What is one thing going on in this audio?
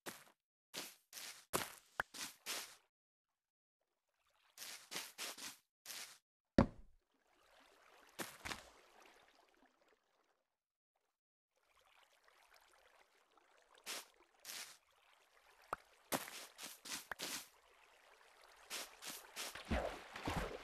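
Footsteps tread quickly across grass.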